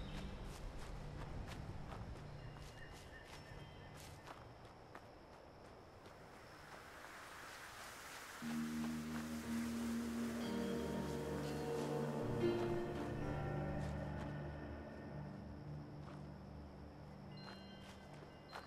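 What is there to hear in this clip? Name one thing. Footsteps crunch on dry ground and leaves.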